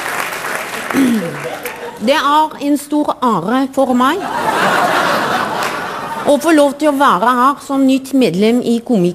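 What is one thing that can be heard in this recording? A woman speaks slowly and expressively through a microphone.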